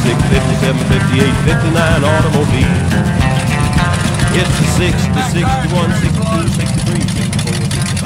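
A man talks loudly over the engine, close by.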